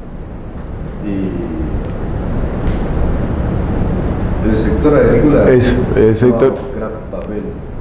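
A man lectures calmly, heard through a room microphone.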